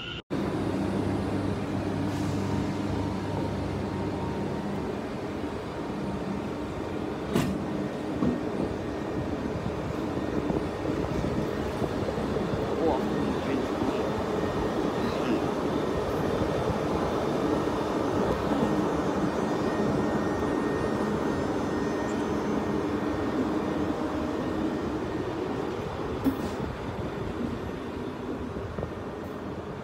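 A train rolls slowly past, its wheels rumbling and clacking on the rails.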